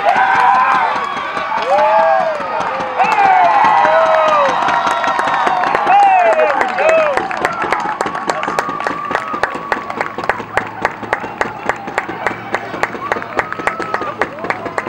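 A crowd of young men cheers and shouts excitedly outdoors.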